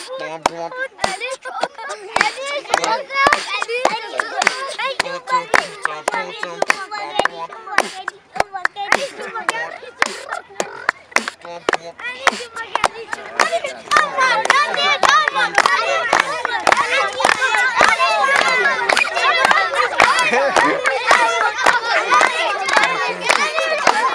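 A crowd of children shout and cheer excitedly outdoors.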